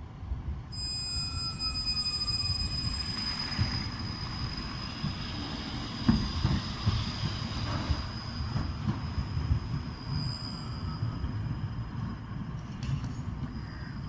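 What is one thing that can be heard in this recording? A tram hums and rumbles as it passes by.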